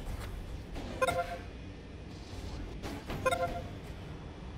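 A short electronic chime rings twice.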